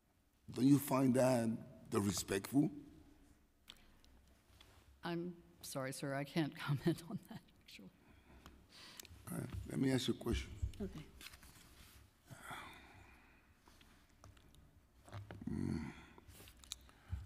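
A middle-aged man speaks into a microphone in a measured, deliberate way.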